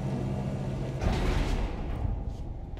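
A lift stops with a loud clunk.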